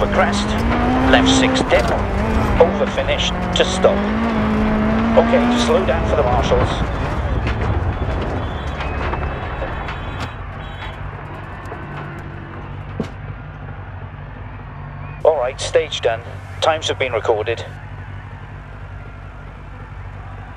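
A rally car engine revs hard, then drops to a low idle.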